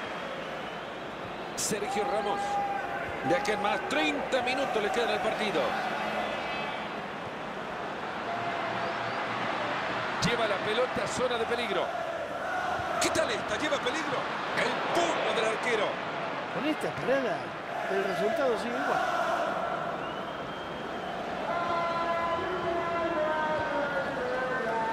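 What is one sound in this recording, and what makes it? A large crowd roars and chants steadily, as in a big stadium.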